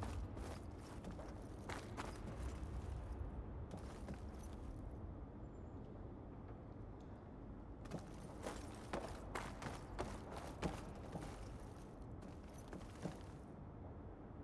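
Footsteps thud on metal flooring.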